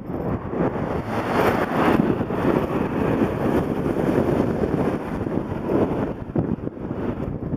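A car passes by on a wet road.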